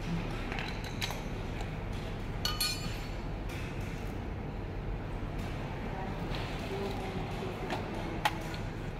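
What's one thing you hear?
Plastic and metal parts click and clatter as they are handled.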